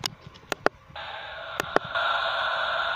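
A video game plays its short startup sound.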